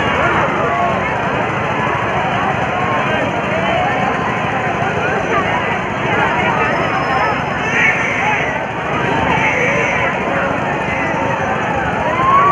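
A fairground ride rumbles as it turns.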